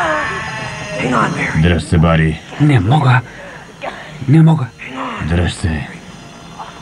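A young woman speaks fearfully.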